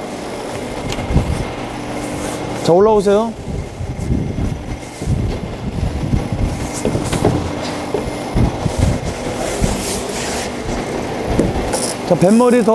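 Knocks and thuds come from people handling a small sailboat.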